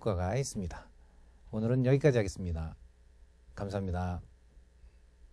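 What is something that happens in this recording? A man speaks calmly, close by, in short phrases.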